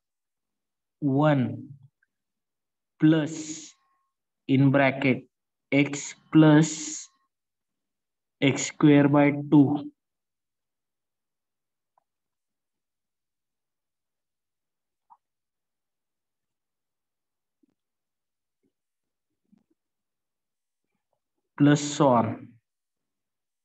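A man speaks calmly and slowly into a microphone, in short phrases with long pauses.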